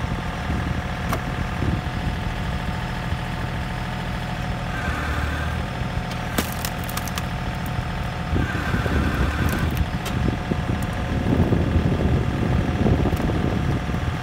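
Split logs thud onto a pile.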